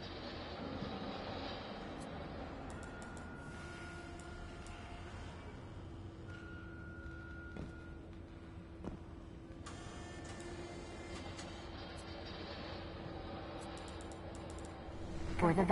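Soft electronic tones chime as menu items are selected.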